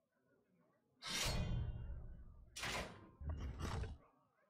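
A fiery blast booms and whooshes.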